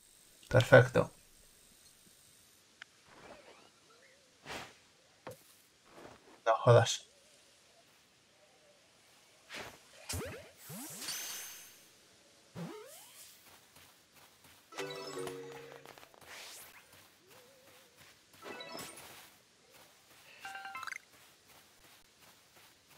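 Light footsteps run through grass.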